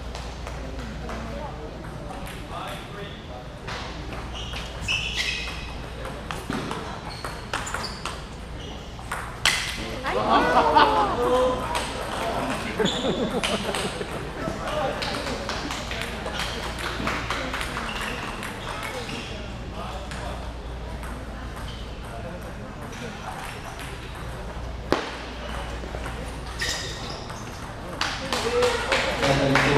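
Voices chatter in a large echoing hall.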